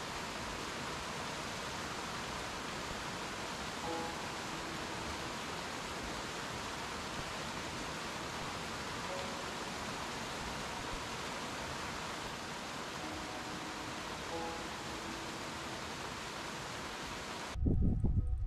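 A mountain stream rushes steadily over rocks.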